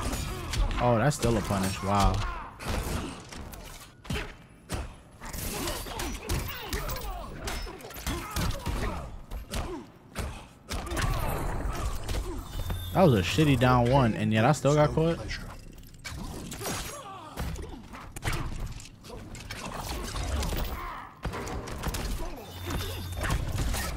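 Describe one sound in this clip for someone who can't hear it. Punches and kicks land with sharp thuds and whooshes.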